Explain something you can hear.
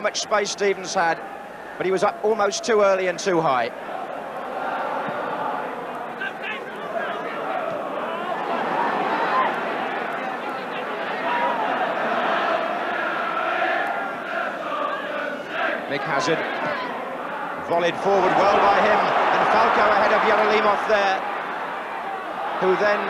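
A large stadium crowd roars and cheers, swelling loudly near the end.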